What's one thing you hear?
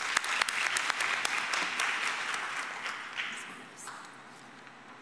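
Applause rings out in a large hall and slowly fades.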